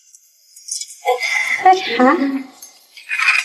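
A young woman speaks brightly nearby.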